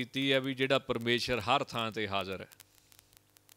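A man speaks into a close microphone in a calm, measured voice.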